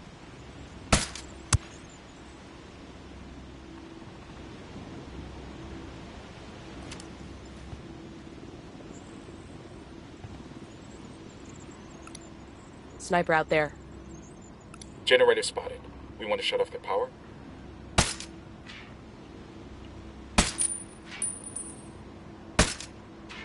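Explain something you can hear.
A rifle fires sharp single shots.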